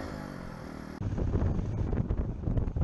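Wind rushes past while riding at speed.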